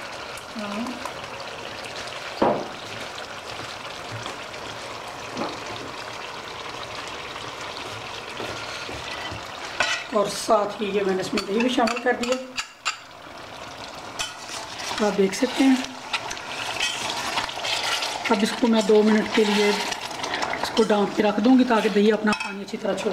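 Food sizzles softly in a pot.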